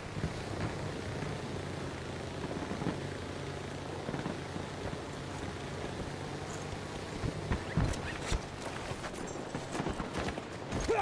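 Wind rushes steadily during a high fall.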